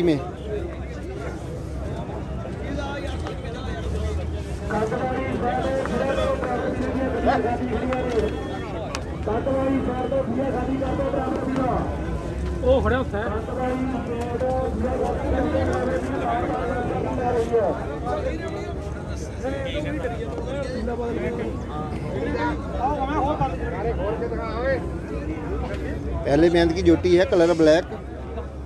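A man talks steadily close by.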